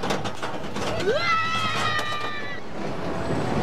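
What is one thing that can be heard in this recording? Riders scream loudly on a roller coaster.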